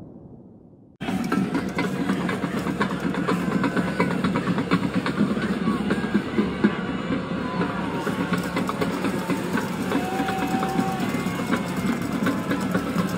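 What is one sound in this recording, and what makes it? A large crowd cheers and chatters in an open stadium.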